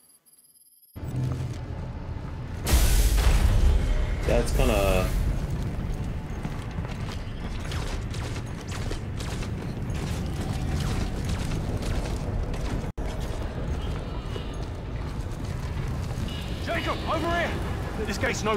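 Game sound effects rumble and clank steadily.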